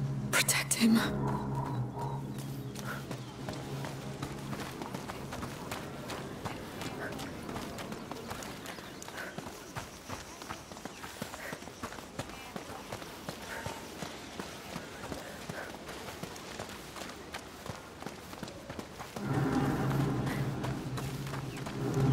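Footsteps crunch on dirt and stone paths.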